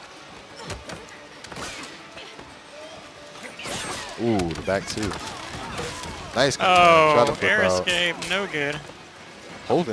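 Punches and kicks thud and crack in a fighting game.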